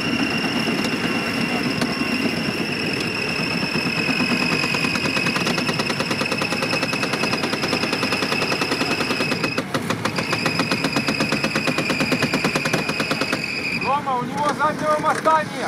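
Big tyres churn and spin through thick mud.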